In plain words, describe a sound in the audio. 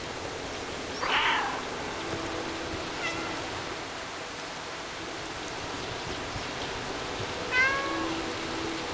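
A cat meows several times.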